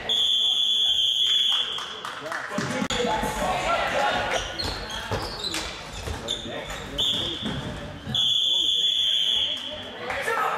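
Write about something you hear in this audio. A referee's whistle blows loud and long in a large echoing hall.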